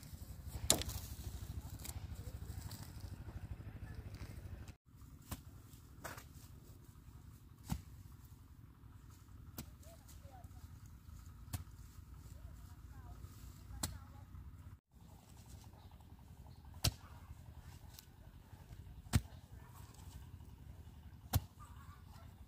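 A hoe strikes and breaks up soil with dull thuds.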